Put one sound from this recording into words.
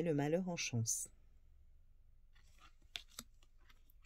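A card is laid down softly on a cloth.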